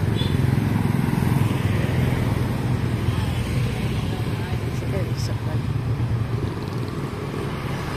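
Motorcycle engines hum and rumble past on a street.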